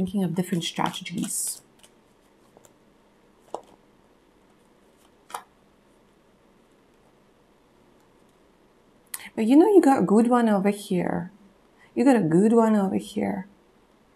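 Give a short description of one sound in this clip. Playing cards rustle and tap softly as they are shuffled by hand.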